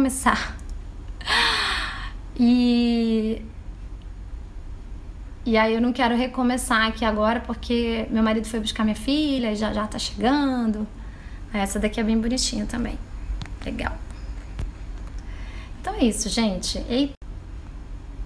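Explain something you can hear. A young woman speaks cheerfully and with animation, close to a phone microphone.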